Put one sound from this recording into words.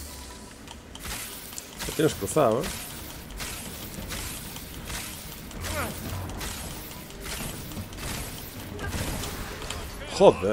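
Energy weapons fire with sharp, repeated zaps.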